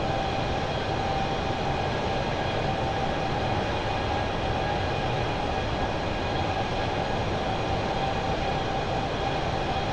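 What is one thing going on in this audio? Jet engines roar steadily with a constant high whine.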